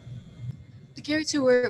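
A young girl speaks calmly into a microphone, sounding close.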